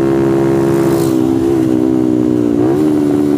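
A motorcycle engine drops in pitch as the rider shifts down.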